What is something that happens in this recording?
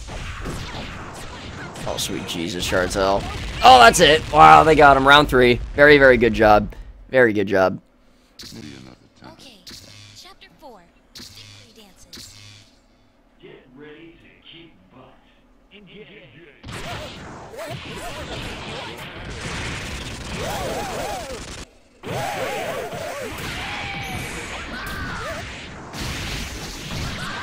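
Punches and kicks land with sharp, rapid smacks.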